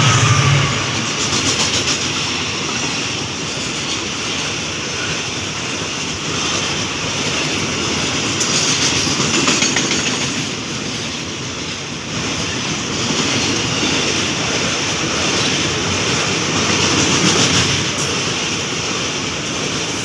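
A long freight train rumbles past close by.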